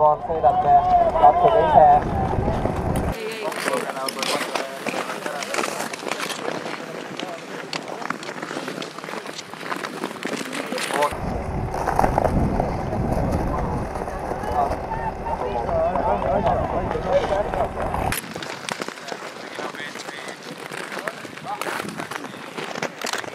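A crowd of people chatters outdoors in the distance.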